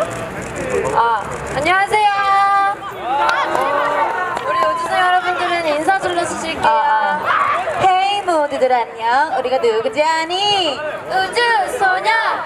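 Young women speak with animation into a microphone, heard over a loudspeaker.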